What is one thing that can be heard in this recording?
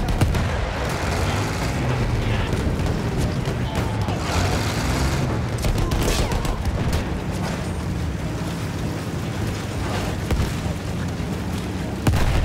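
A tank engine rumbles and its tracks clank steadily.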